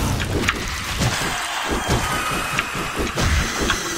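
Punches thud.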